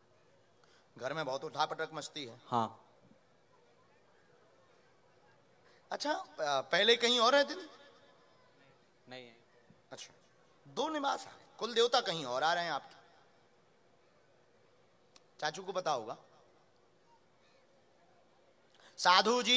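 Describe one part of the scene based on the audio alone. A man speaks into a microphone in short phrases with pauses between them.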